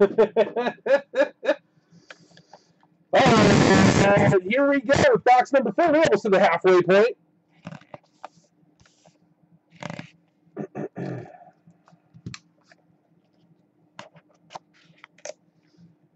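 A small cardboard box rubs and taps against a table.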